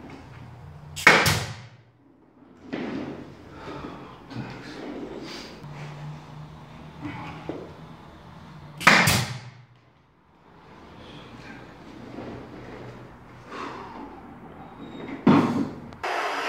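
A pneumatic nail gun fires nails into a wooden baseboard.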